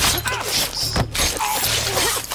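A knife stabs into flesh with a wet thud.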